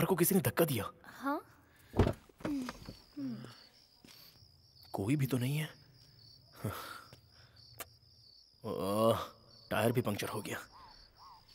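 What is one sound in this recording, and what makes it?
A young woman speaks anxiously up close.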